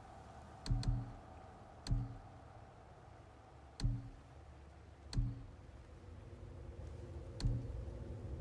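A short soft menu click sounds each time a selection moves.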